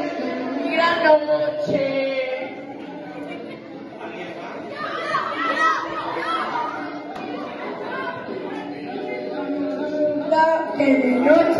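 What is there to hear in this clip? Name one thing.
Children chatter and call out excitedly.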